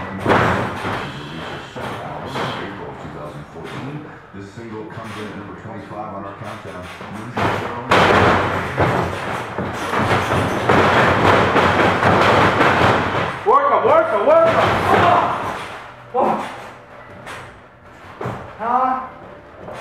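Young men shout and cheer in an echoing room.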